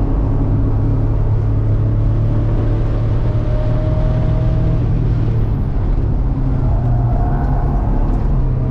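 A car engine drones loudly and steadily from inside the cabin.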